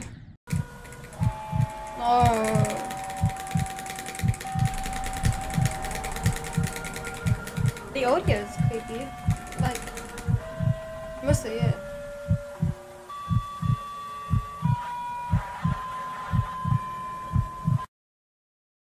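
Electronic music plays with a steady, thumping beat.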